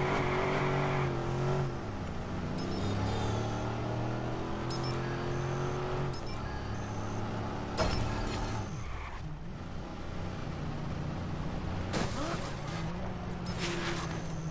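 A car engine revs and hums steadily as the car drives fast.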